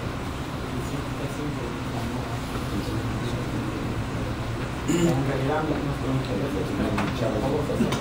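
A man speaks calmly, heard from across a table.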